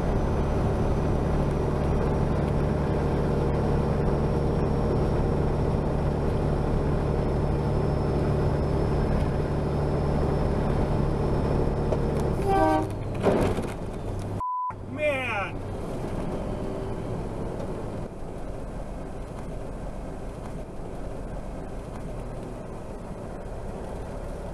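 Tyres hum on a highway.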